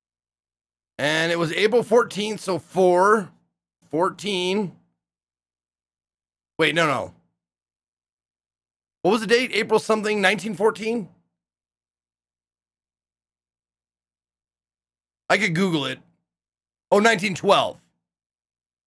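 A man reads aloud into a close microphone in bursts, with pauses between.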